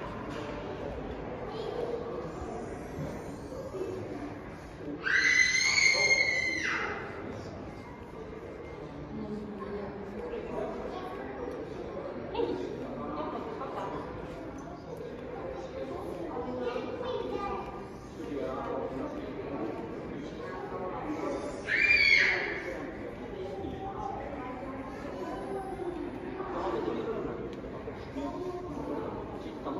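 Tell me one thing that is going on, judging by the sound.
Men and women talk quietly in the distance in a large echoing hall.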